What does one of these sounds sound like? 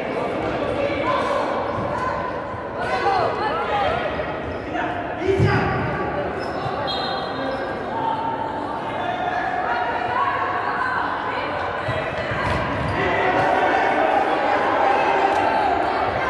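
Sports shoes squeak on a hard floor in a large echoing hall.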